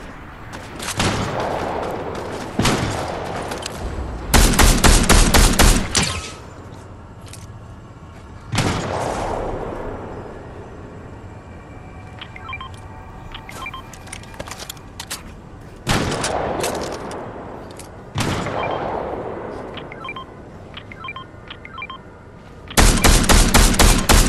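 Rifle shots ring out, single cracks and rapid bursts with echoing tails.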